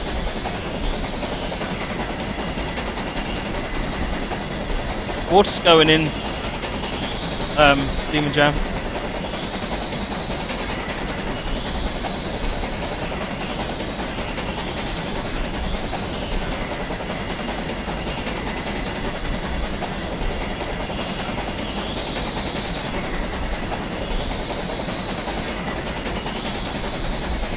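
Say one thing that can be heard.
A steam locomotive rumbles steadily along the track.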